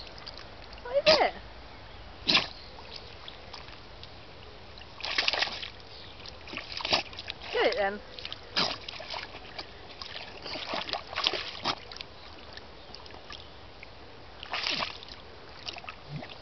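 A dog splashes and wallows in shallow mud.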